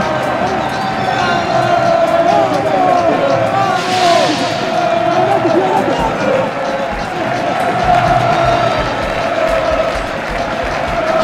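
A crowd cheers and chants loudly.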